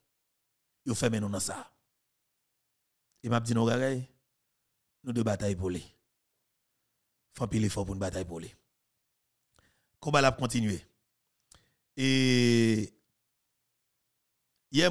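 A young man speaks calmly into a close microphone, in short phrases with pauses.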